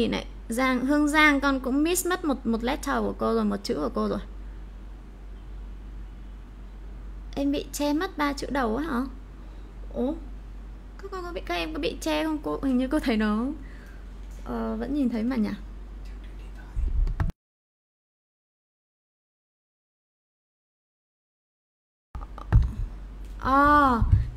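A young woman speaks clearly and with animation into a close microphone, pausing between phrases.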